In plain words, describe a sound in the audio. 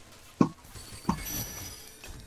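Electric magic zaps crackle sharply in a video game.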